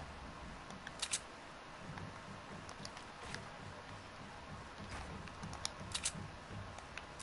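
Wooden building pieces snap into place with sharp clacks.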